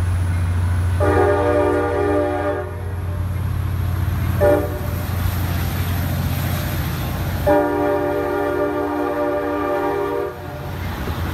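A diesel train horn blasts loudly several times.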